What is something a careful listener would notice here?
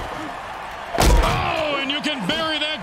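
Armoured players crash together in a heavy tackle.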